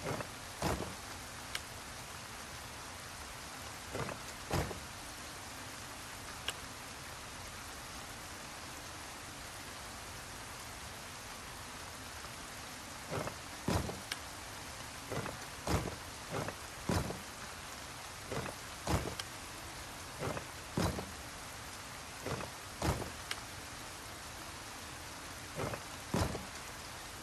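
Stone tiles click and clunk as they turn into place.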